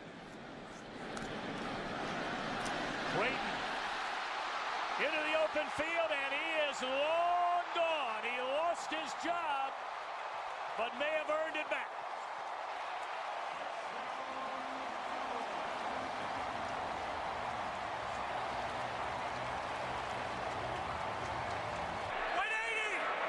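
A large stadium crowd roars and cheers loudly.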